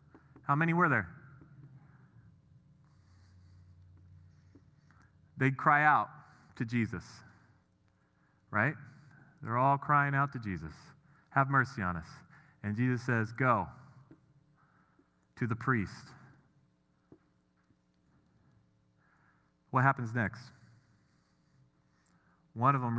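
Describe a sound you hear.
A man speaks calmly in short bursts, as if explaining.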